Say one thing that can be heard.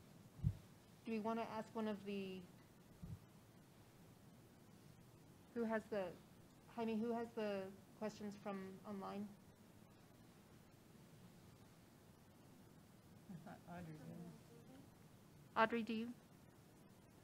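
A woman speaks calmly into a microphone in short phrases with pauses.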